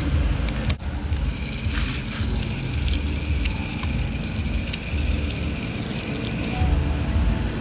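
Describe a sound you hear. Water runs from a tap and splashes onto the ground.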